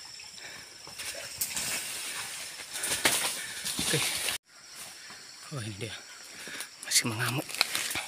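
Leaves and undergrowth rustle close by.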